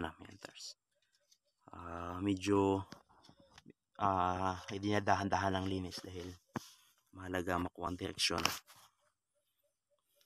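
Dry soil scrapes and crumbles under a hand.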